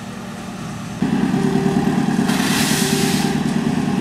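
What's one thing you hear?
A train engine drones loudly close by as carriages roll past.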